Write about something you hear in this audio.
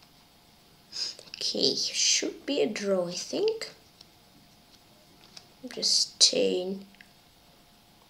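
A boy speaks calmly into a microphone, close by.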